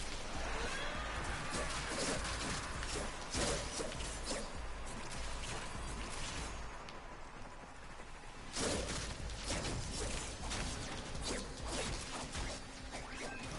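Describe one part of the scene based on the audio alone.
Energy weapons fire in rapid, crackling bursts.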